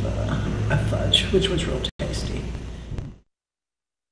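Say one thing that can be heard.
An elderly woman speaks calmly, close to a microphone.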